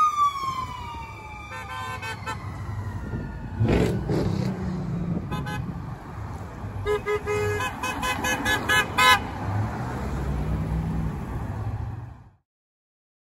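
Cars and trucks drive past on a road nearby.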